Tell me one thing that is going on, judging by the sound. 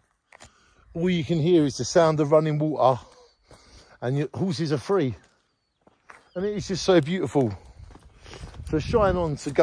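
A middle-aged man talks with animation close to the microphone, outdoors.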